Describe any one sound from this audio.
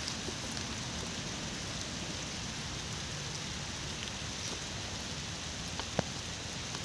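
Wind rustles through tree leaves outdoors.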